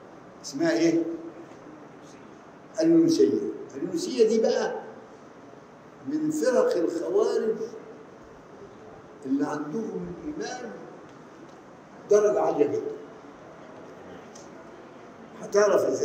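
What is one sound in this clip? An elderly man speaks slowly and with emphasis into a microphone, in short phrases separated by pauses.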